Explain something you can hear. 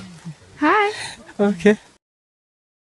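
A young man talks excitedly close by.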